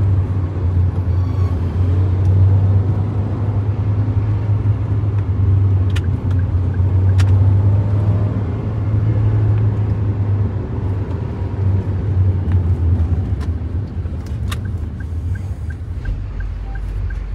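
Heavy trucks rumble close by.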